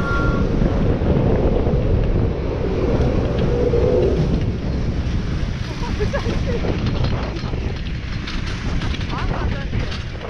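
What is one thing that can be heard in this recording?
Skis slide and hiss over packed snow.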